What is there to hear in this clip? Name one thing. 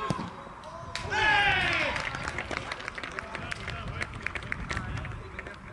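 A small crowd of spectators cheers outdoors.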